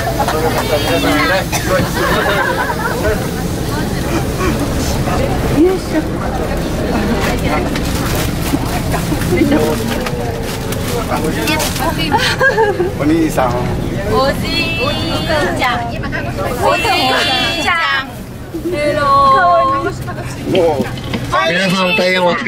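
A bus engine hums low and steadily, then stops.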